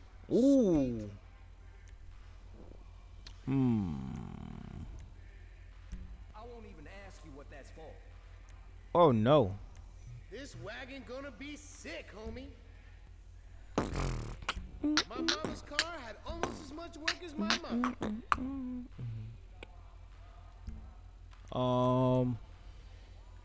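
A young man talks with animation into a close microphone, with loud exclamations.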